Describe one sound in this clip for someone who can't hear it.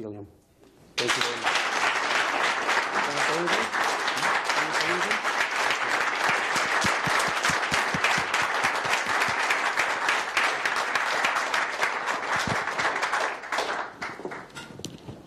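A crowd applauds loudly in a large room.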